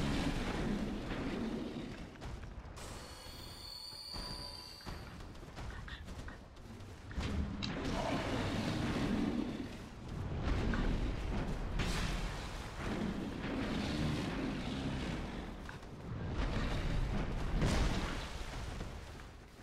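A sword swings and strikes with sharp hits.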